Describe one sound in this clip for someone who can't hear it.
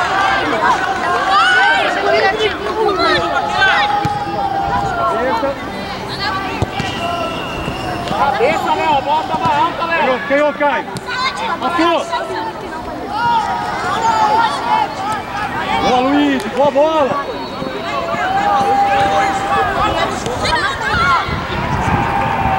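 Spectators cheer and shout from the sidelines.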